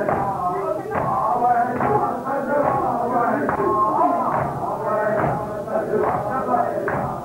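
A crowd of men chants loudly together.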